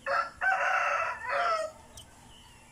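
A rooster crows nearby.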